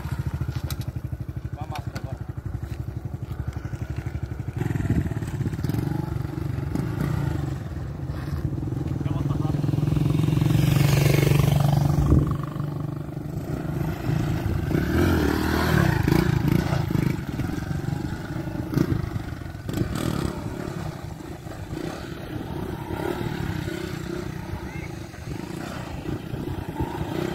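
A small motorcycle engine revs and putters nearby outdoors.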